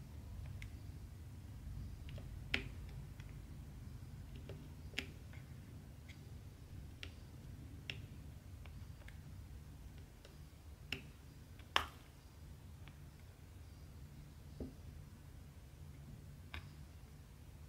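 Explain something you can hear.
Small plastic beads click and tap as they are pressed onto a sticky surface.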